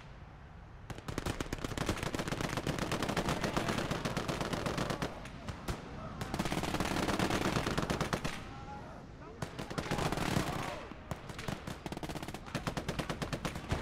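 Rapid gunfire crackles nearby.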